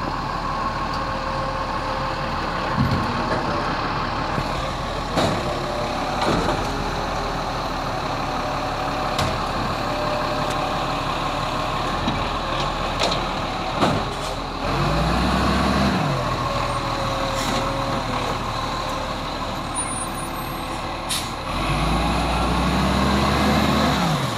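A truck engine idles and revs.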